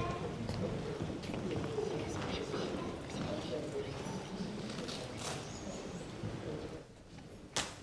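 A man reads aloud in a low voice, echoing in a large hall.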